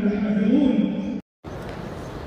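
An elderly man recites in a melodic chant through a microphone, echoing in a large hall.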